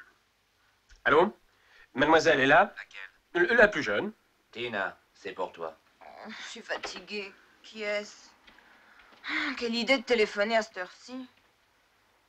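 A young man talks on a telephone with animation.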